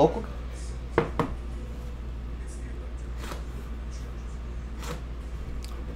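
A cardboard box scrapes and taps as hands slide it open.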